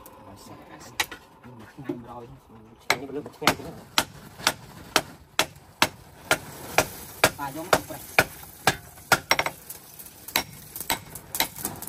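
A hammer strikes hot metal on an anvil with sharp ringing blows.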